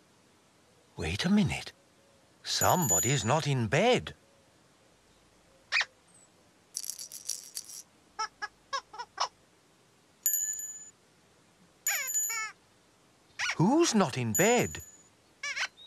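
A childlike character babbles in a high, sing-song voice close by.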